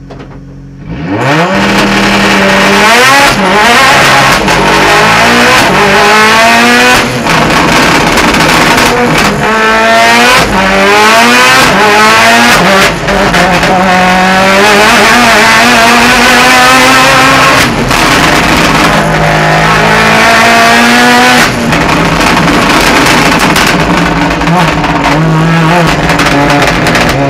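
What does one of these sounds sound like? A four-cylinder race car engine screams up through the gears at full throttle, heard from inside the cockpit.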